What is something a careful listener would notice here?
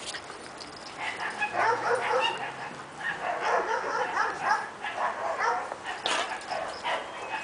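Small dogs growl and grunt playfully.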